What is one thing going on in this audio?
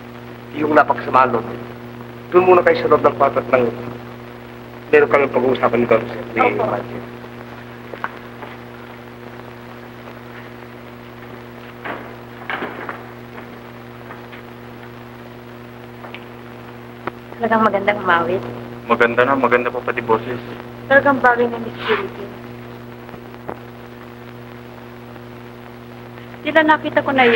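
A man speaks with animation in short bursts, heard through a crackly old recording.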